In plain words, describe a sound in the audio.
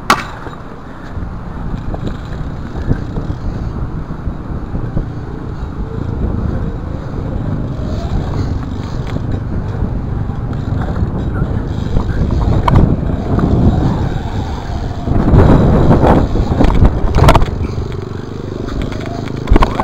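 A BMX bike's tyres roll over concrete.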